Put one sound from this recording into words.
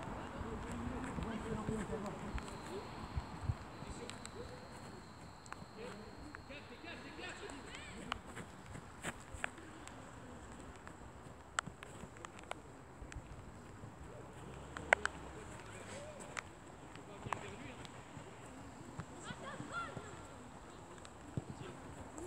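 Footsteps patter on artificial turf as a man jogs.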